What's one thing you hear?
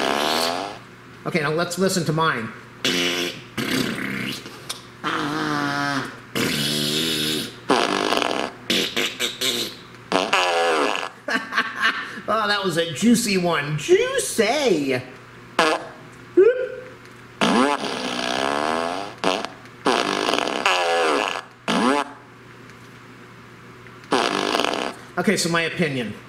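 A small speaker plays loud, buzzing fart sounds in short bursts with pauses between them.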